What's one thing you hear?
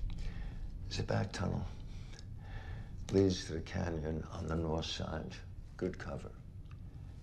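An elderly man speaks in a low, calm voice close by.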